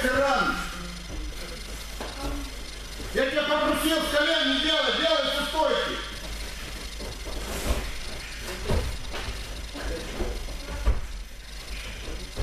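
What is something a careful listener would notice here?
Bare feet thump and shuffle on a padded mat in an echoing hall.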